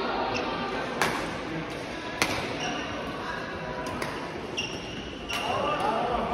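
Rackets hit a shuttlecock back and forth with sharp smacks in an echoing hall.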